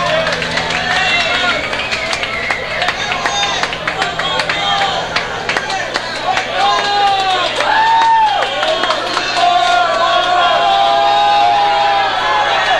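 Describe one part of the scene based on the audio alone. A rock band plays loudly in an echoing hall.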